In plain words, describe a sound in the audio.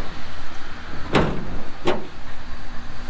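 A pickup truck's tailgate bangs open.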